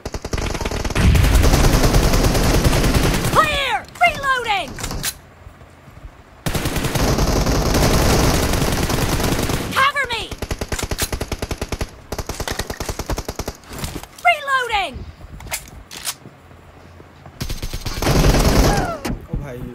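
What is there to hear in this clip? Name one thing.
Rapid automatic rifle fire rattles in bursts.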